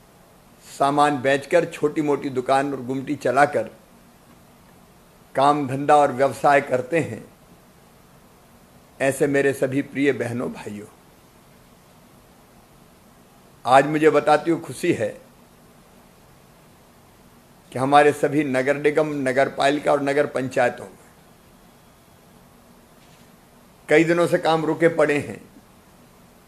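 A middle-aged man speaks calmly into a close microphone, in short phrases with pauses.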